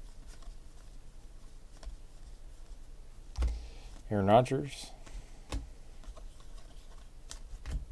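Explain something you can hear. Trading cards shuffle and rustle softly between hands.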